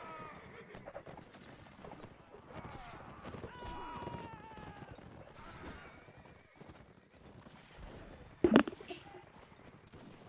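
Musket shots crack out across open ground.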